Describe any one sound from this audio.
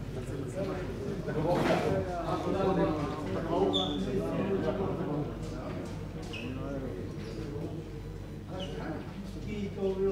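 Men talk quietly together at close range.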